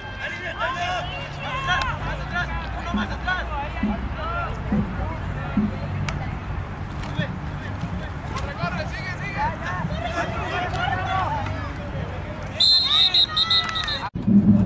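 A crowd of spectators shouts and cheers outdoors, heard from a distance.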